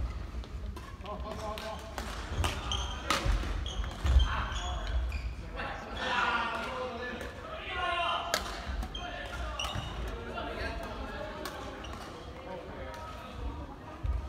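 Badminton rackets smack a shuttlecock back and forth.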